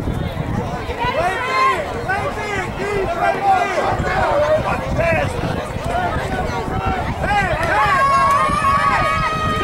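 Young boys shout and call out during a football play outdoors.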